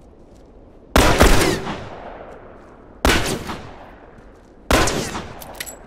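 Gunshots ring out loudly, echoing off walls.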